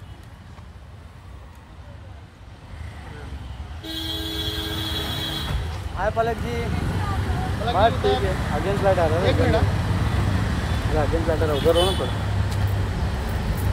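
Shoes tap on pavement as a woman walks.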